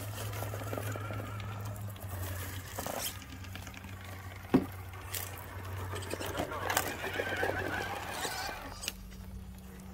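Rubber tyres scrape and grind over rocks.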